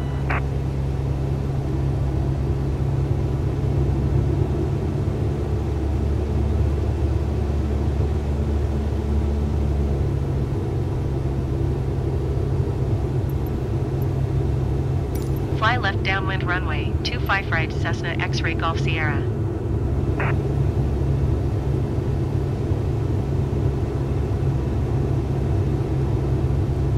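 A small propeller plane's engine drones steadily in flight.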